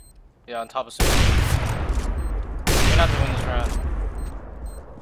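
A rifle fires twice with loud, booming blasts.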